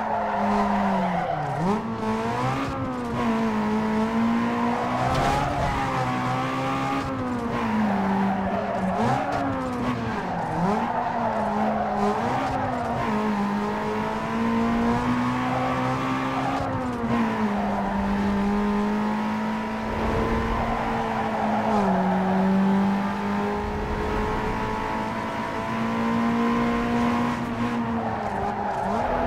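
A racing car engine revs hard, rising and falling as the gears shift.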